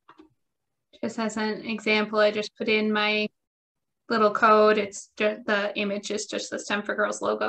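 A woman speaks steadily through a microphone on an online call.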